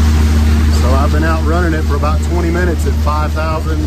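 A middle-aged man talks calmly and close up, outdoors in wind.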